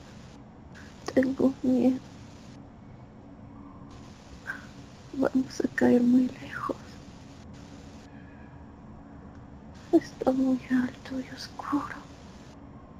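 An elderly man speaks in short bursts over an online call.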